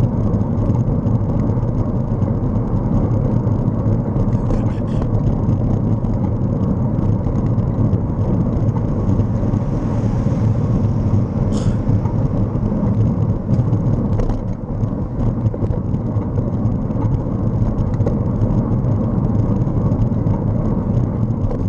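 A vehicle engine hums steadily as it drives along a road.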